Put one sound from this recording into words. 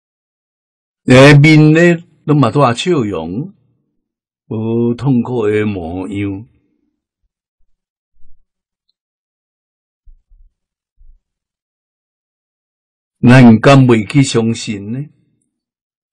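An elderly man speaks calmly and warmly, close to a microphone.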